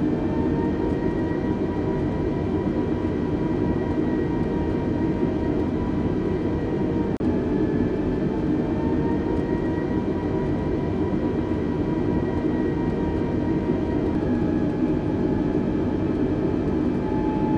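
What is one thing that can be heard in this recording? Jet engines roar steadily, heard from inside an aircraft cabin.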